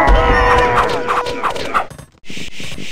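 Swords clash and clang in a battle.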